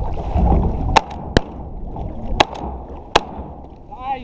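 Shotguns fire in sharp, quick bangs.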